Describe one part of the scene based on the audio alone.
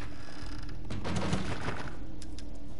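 A wooden crate lid thumps shut.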